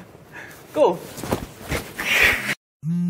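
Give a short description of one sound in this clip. Clothing rustles and bumps against a phone.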